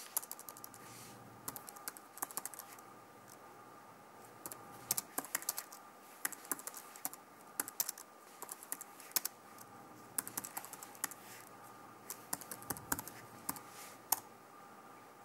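Keys on a computer keyboard click in quick bursts of typing.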